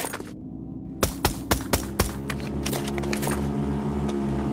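A gun fires several sharp shots in quick succession.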